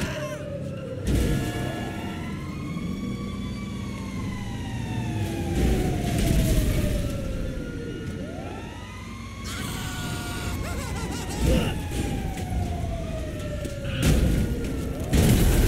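A body slams onto pavement.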